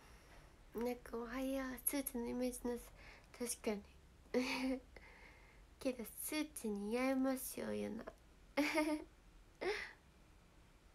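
A young woman speaks cheerfully and close up, as if to a microphone.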